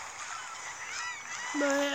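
Water splashes.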